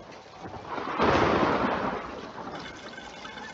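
Thunder rumbles.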